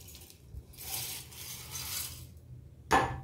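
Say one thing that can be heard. Dry flakes rustle as they pour into a metal jar.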